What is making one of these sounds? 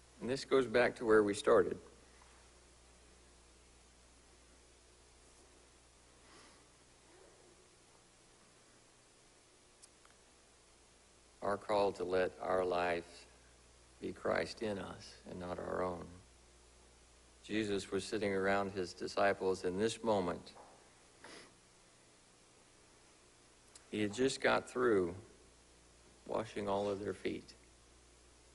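A man speaks calmly into a microphone, with long pauses, in a room with slight echo.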